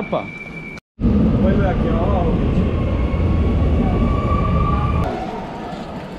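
A metro train rumbles loudly close by.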